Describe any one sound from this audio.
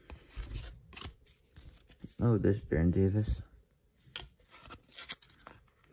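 Cardboard cards slide and rustle against each other.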